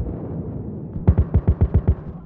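Gunfire rattles.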